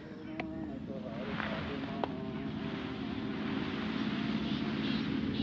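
Grass rustles as a man carries a bundle of it.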